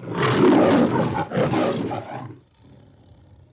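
A lion roars loudly and close by.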